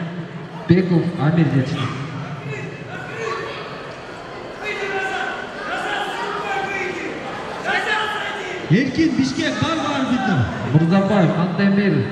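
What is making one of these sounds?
A crowd of children and adults shouts and cheers in a large echoing hall.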